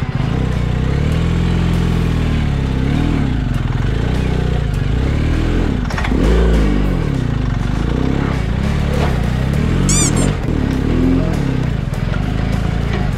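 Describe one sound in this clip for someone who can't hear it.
A motorcycle engine runs and revs loudly close by.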